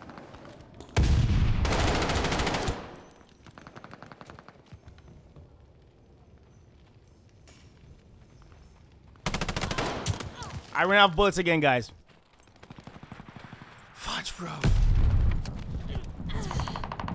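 Gunfire bursts out in loud rapid volleys.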